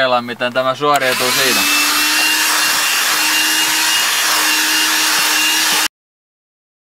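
A handheld vacuum cleaner whirs steadily.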